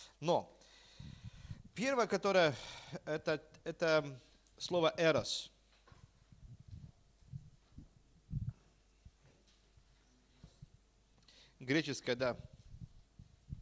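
A middle-aged man speaks calmly into a microphone, in bursts with long pauses.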